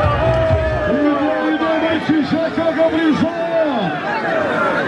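A man shouts loudly nearby.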